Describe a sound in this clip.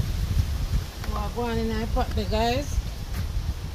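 A woman speaks calmly close by.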